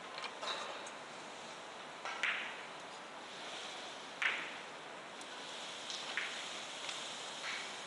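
Footsteps walk across a hard floor in a quiet hall.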